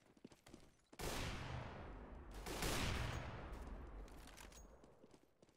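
A sniper rifle fires loud shots that ring out.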